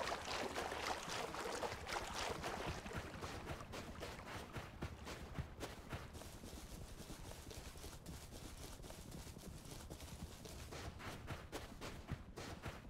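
Footsteps crunch steadily over sand and grass.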